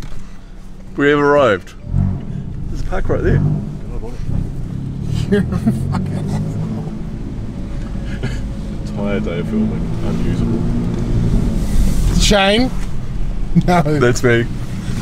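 A man talks and laughs close by.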